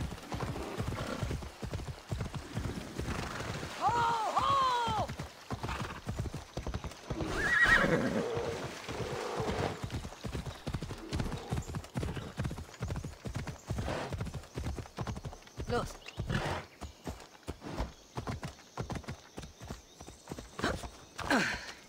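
A horse gallops, its hooves pounding quickly on the ground.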